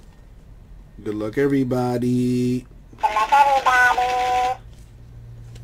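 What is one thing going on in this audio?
A toy plays a squeaky, high-pitched electronic voice.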